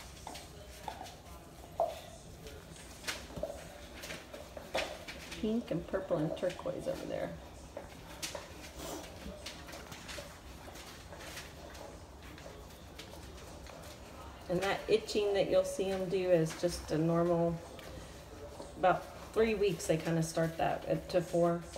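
Small paws scuffle and patter.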